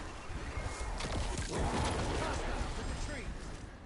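Explosions and energy blasts boom and crackle.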